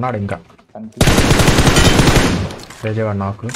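Gunfire bursts loudly.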